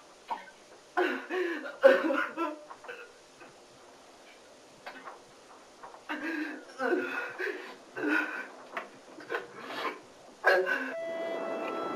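A young man sobs and cries out in distress close by.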